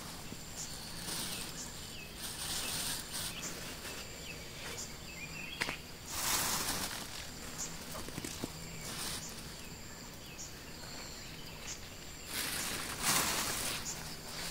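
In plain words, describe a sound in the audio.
Plastic bags rustle as a woman handles them.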